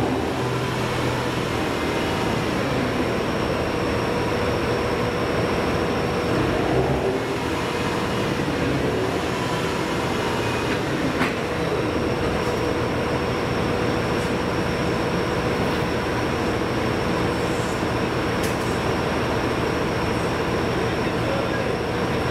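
A stationary train engine hums steadily.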